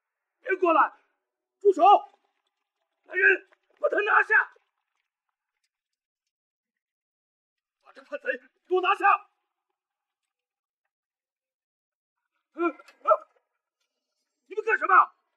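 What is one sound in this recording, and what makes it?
A middle-aged man speaks sternly in short phrases.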